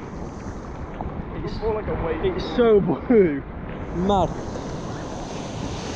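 Water sloshes and splashes close by.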